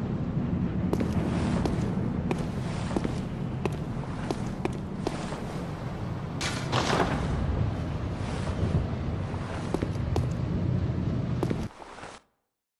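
Footsteps tap steadily on stone paving.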